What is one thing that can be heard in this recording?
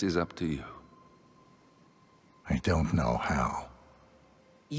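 A man speaks in a low, calm voice.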